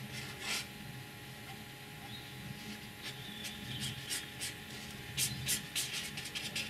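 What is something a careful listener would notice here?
A pen scratches and squeaks across paper in short strokes.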